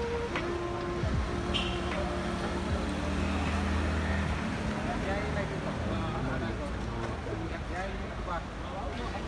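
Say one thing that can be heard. Street traffic rumbles outdoors.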